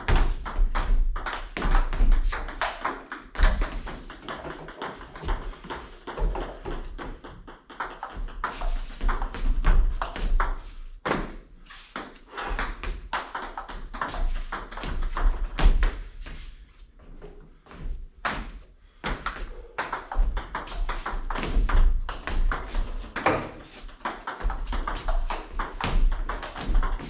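Table tennis balls click off paddles and the table in a rally.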